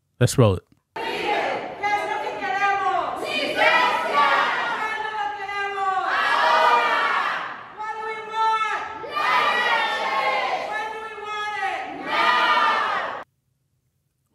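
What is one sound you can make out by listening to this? A crowd chants loudly in a reverberant hall, heard through a speaker.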